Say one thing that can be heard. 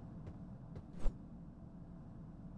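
A door handle clicks against a locked door.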